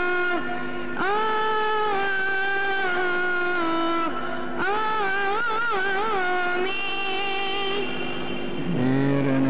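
A boy chants in a high, clear voice through a microphone.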